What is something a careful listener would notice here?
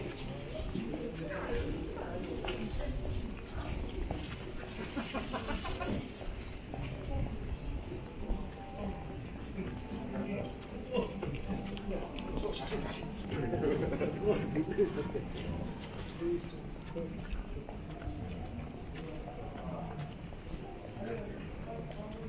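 Footsteps of passers-by tap on pavement outdoors.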